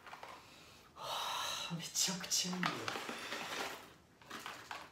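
Coffee beans rattle as they are poured into a cup.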